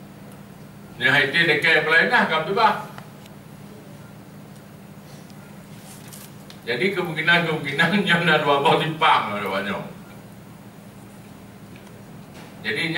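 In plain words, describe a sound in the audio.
A middle-aged man speaks calmly into a microphone, heard through a loudspeaker, with pauses.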